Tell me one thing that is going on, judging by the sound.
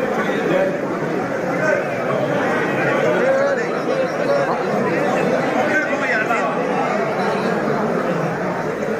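A large crowd of men chatters and calls out loudly all around, in a hall with an echo.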